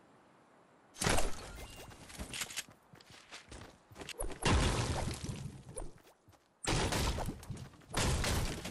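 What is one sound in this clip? A pickaxe strikes hard material with loud, repeated thuds.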